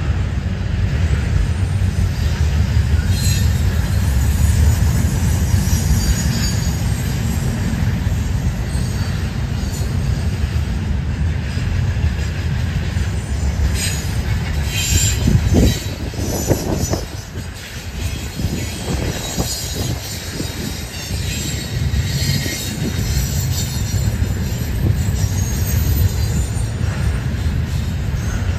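A long freight train rumbles steadily past nearby.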